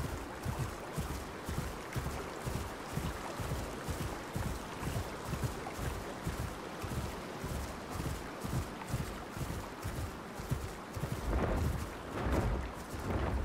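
Heavy footsteps thud steadily through grass.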